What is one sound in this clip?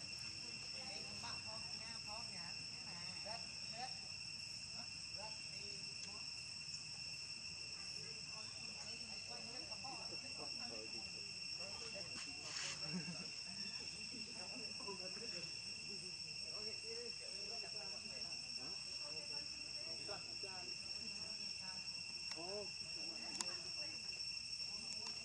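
Young monkeys squeak and chatter nearby.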